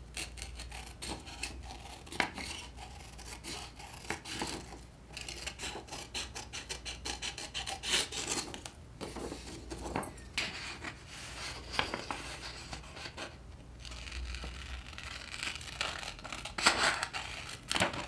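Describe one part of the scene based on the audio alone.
Paper rustles and crinkles as it is moved and handled.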